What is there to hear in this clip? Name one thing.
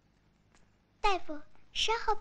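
A young child calls out a question in a high voice.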